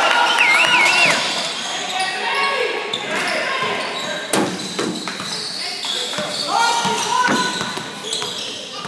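A crowd of young people calls out in an echoing gym.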